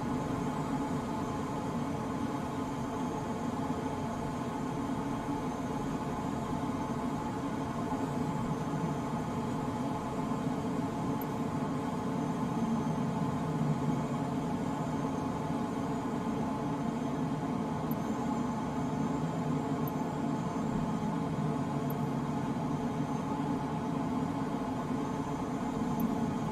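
Wind rushes steadily past a glider's canopy.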